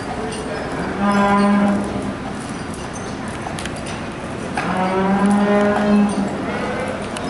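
An ox moos loudly nearby.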